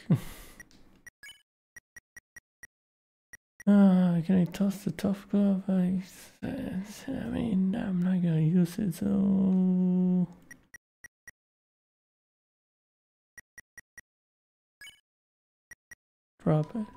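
Short electronic blips tick as a game menu cursor moves.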